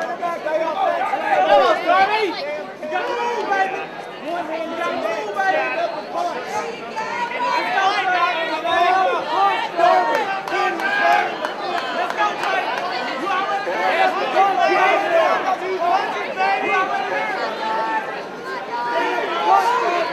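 A crowd shouts and cheers in a large hall.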